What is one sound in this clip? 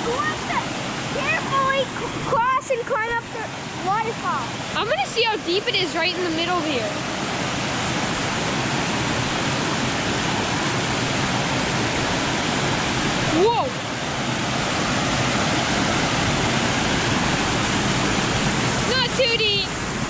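Water rushes steadily over a small waterfall close by.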